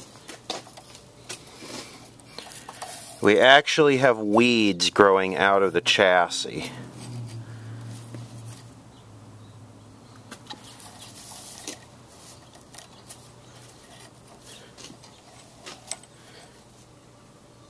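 Dry wires rustle and scrape as a hand pushes them aside.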